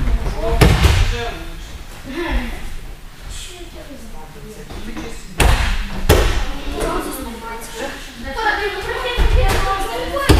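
Young boys talk and call out in an echoing hall.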